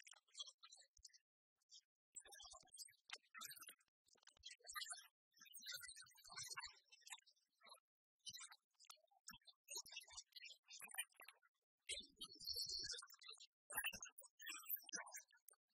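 A cartoon bird squawks and clucks.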